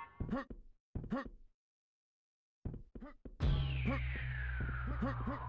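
A short game chime sounds as an item is picked up.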